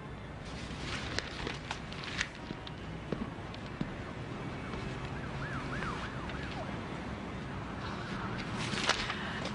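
A newspaper rustles.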